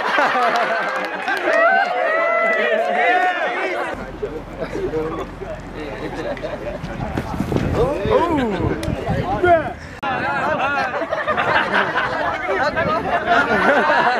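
A group of young men laugh and cheer outdoors.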